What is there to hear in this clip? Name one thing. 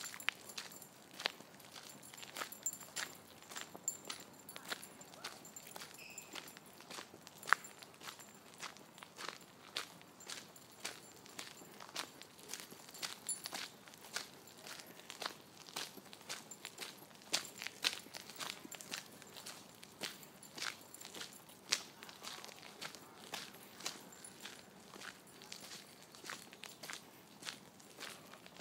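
Footsteps crunch on a gravel path at a steady walking pace.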